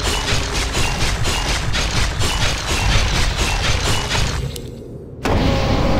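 A fiery spell bursts with a loud whoosh.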